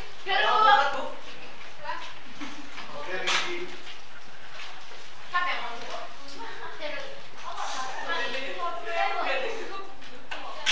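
Young people chatter quietly.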